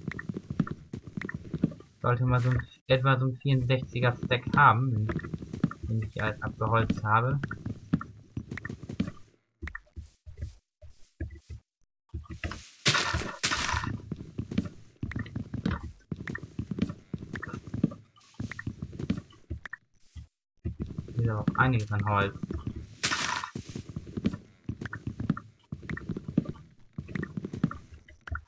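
Wood blocks are chopped with an axe in a video game, with short repeated thuds.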